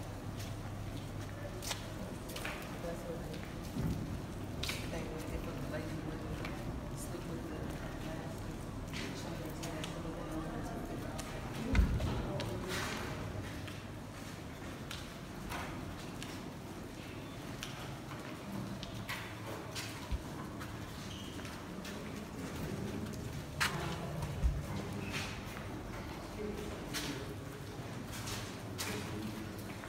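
Women talk quietly nearby.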